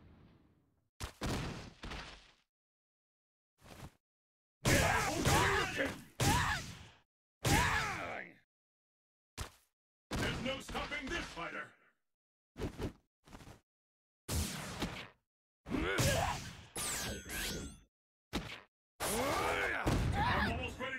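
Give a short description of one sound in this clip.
Heavy punches and body slams thud and crash in quick bursts.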